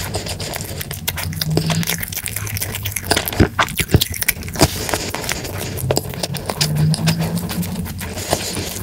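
A young man hums with a low voice between bites.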